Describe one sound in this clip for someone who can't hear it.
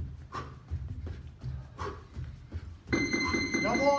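A man jumps on a padded floor with soft thuds.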